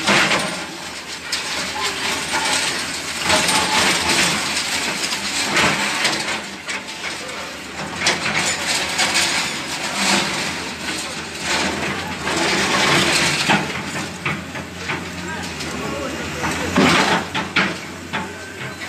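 Concrete rubble crashes and clatters as a building is torn down.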